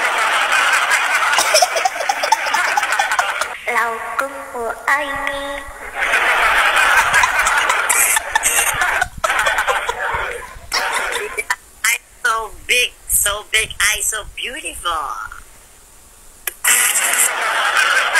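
A young woman laughs and talks over an online call.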